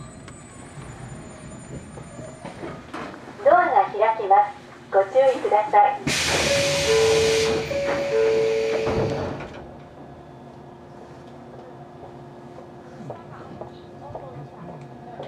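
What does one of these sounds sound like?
A train idles with a low, steady hum.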